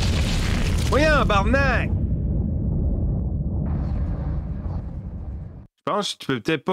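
An explosion booms and rumbles loudly.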